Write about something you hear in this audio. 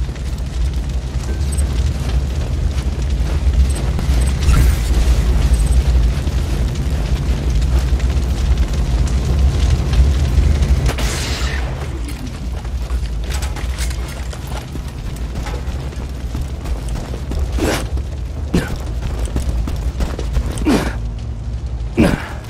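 A heavy train rumbles steadily nearby.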